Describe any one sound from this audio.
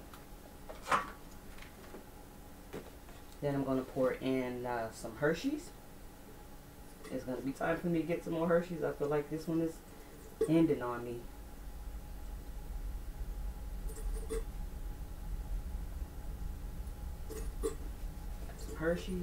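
Bottles and jars knock and clink as they are handled.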